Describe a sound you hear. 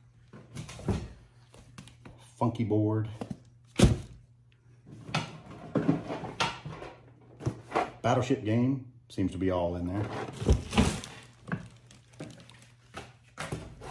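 Cardboard game boxes knock and scrape against plastic bins as they are handled.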